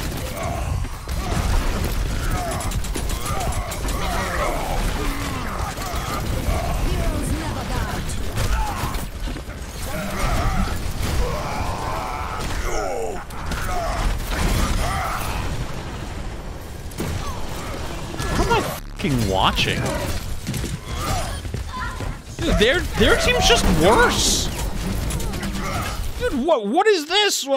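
Gunfire and game effects crackle and boom.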